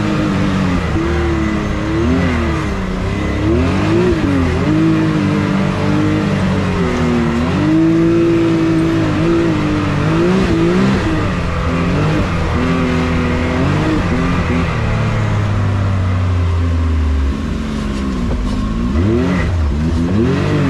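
An off-road vehicle's engine revs up and down, rising and falling in pitch.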